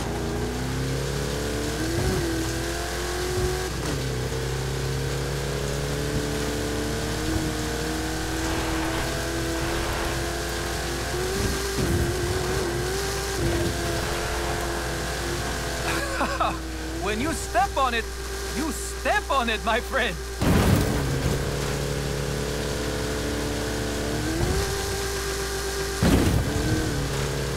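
An off-road vehicle's engine roars and revs up and down while driving fast.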